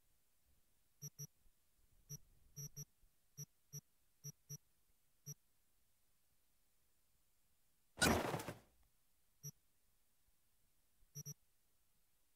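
Soft interface clicks tick at irregular intervals.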